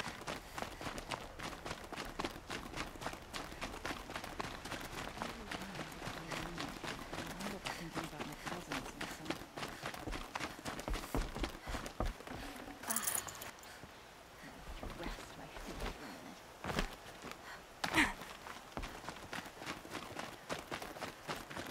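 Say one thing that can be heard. Quick footsteps run over stone.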